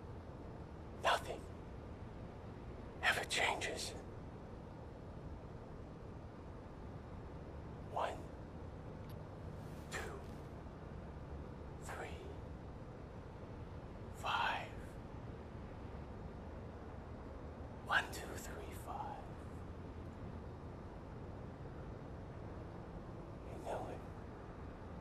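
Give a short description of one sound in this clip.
A man speaks in short, quiet phrases with long pauses.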